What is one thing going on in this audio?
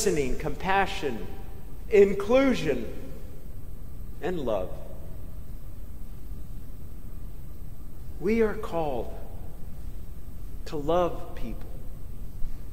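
A man speaks slowly and calmly through a microphone, with long pauses, in an echoing hall.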